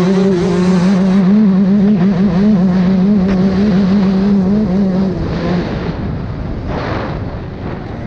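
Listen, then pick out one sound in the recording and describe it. Tyres rumble over bumpy dirt.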